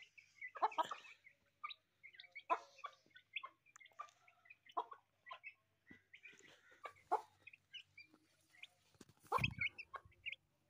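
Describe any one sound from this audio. A hen clucks softly.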